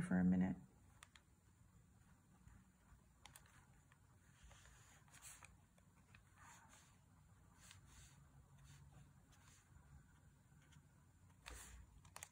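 A paintbrush dabs and brushes softly on paper.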